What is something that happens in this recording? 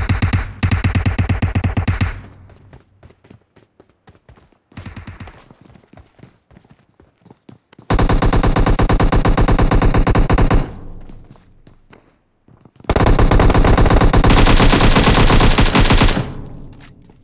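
Rapid automatic gunfire rattles in long bursts.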